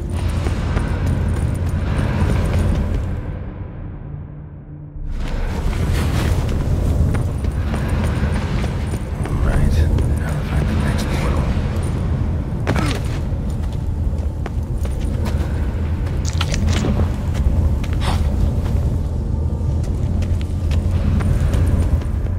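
Footsteps run over stone in a large echoing hall.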